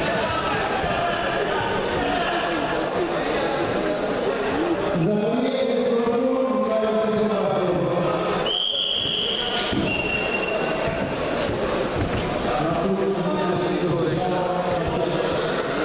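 A crowd of men and boys chatters loudly in a large echoing hall.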